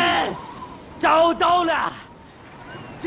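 A young man shouts excitedly close by.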